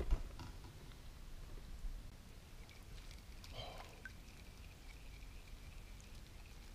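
Water laps gently against a kayak.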